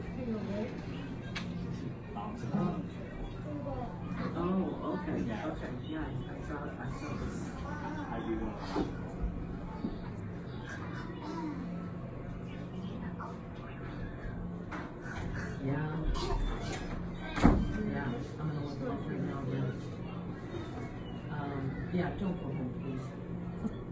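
A gymnast's feet thud on a sprung floor as she tumbles and lands.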